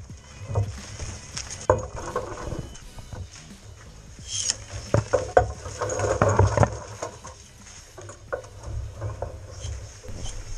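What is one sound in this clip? Twigs and leaves rustle and shake.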